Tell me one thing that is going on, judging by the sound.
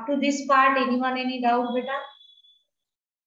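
A woman speaks calmly over an online call, then falls silent.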